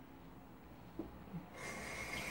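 A ceramic mug is set down on a stone countertop with a light clunk.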